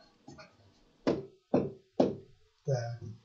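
A pen taps three times on a hard surface.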